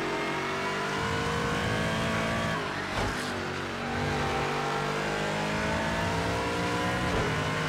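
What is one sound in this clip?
A race car engine drops in pitch as the car brakes and shifts down, then climbs again while accelerating.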